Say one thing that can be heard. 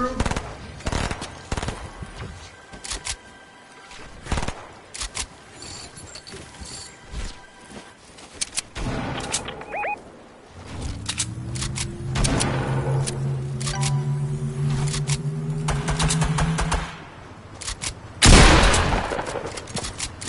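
Footsteps patter quickly on hard ground in a video game.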